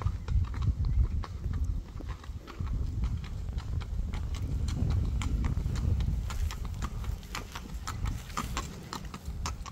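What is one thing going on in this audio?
A horse's hooves clop steadily on pavement.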